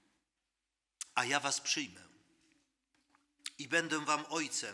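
A man speaks through a microphone in a resonant hall, in a slow, earnest preaching voice.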